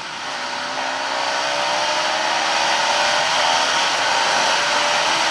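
A motorcycle engine drones steadily, slowly rising in pitch as it speeds up.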